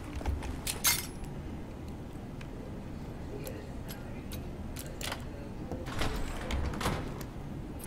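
A door lock clicks.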